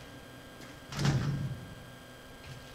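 A heavy metal door thuds and rattles without opening.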